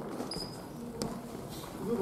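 A badminton racket strikes a shuttlecock with a sharp pop.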